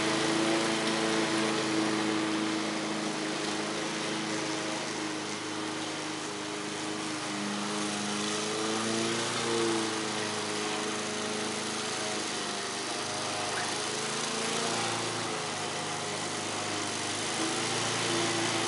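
A lawn mower engine drones steadily in the distance.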